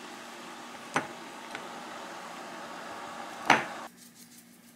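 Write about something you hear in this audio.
Tongs clink against a glass bowl.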